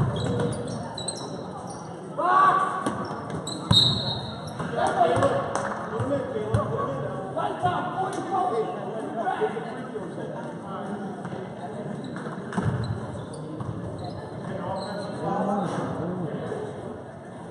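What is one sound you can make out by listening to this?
Sneakers squeak and thud on a wooden court in a large echoing gym.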